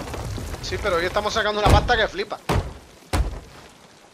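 Water splashes out of a bucket.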